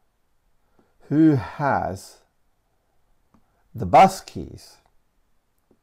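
A man speaks calmly and clearly into a close microphone, in short phrases.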